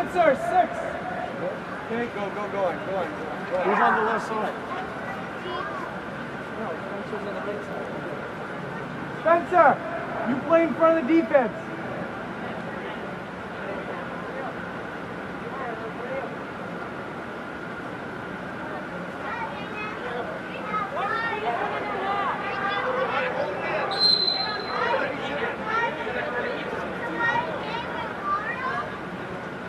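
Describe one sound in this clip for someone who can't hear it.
Young players shout and call out across a large echoing hall.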